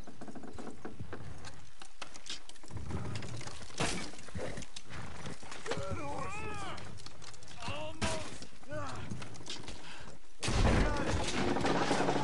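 Horse hooves thud on soft ground.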